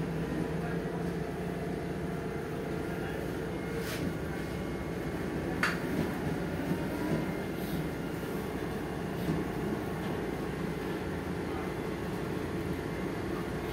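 A bus body rattles and clatters over the road.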